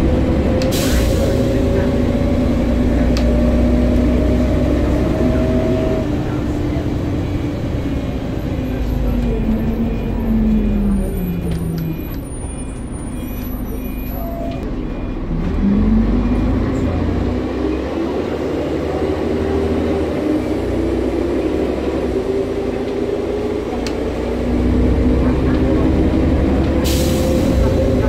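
A bus engine rumbles low and steadily.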